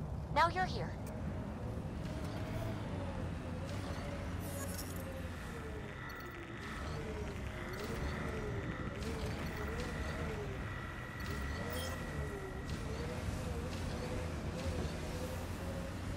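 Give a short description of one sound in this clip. A vehicle engine hums and revs up and down as it drives.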